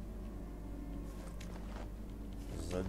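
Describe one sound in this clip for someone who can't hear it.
Paper rustles as something is picked up.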